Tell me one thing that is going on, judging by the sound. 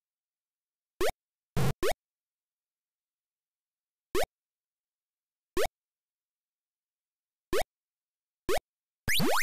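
Short rising electronic beeps of a retro video game sound from time to time.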